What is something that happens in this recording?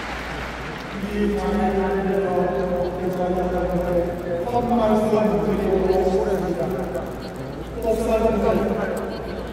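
A huge crowd sings together in long, drawn-out notes, echoing across the stadium.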